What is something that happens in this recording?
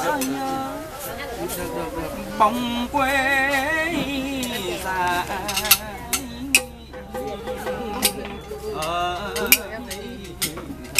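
A man sings with vibrato through a microphone and loudspeaker.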